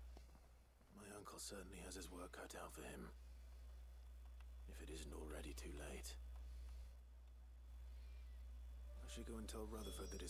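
A man speaks calmly and low, with pauses.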